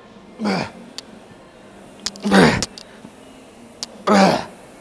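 Dumbbells clink against a metal rack.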